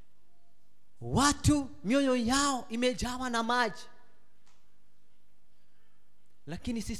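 A man preaches with animation into a microphone.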